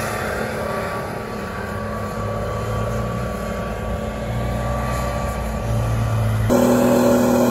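Armoured vehicle engines rumble as tracks roll over sand.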